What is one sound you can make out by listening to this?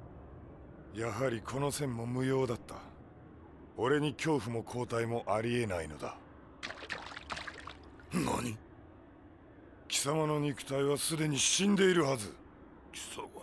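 A man speaks in a deep, tense voice.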